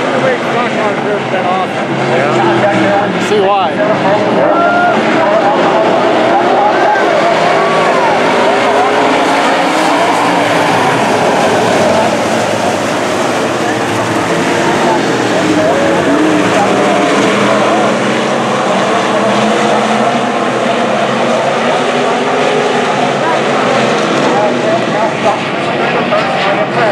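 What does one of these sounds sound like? Several race car engines roar loudly as cars speed around a dirt track.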